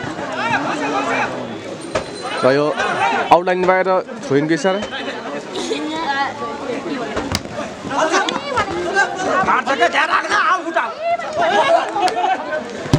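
Men close by talk and shout excitedly.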